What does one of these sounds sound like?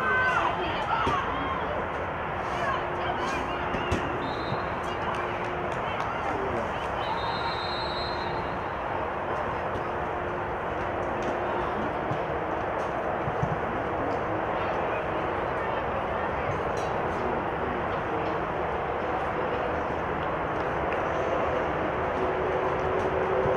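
Young women shout to each other across an open outdoor pitch.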